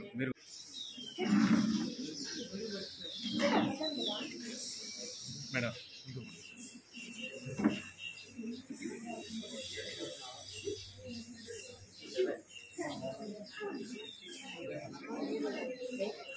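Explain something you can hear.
A man speaks calmly to the people around him.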